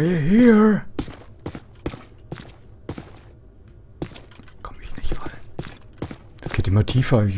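Footsteps thud on hard stairs.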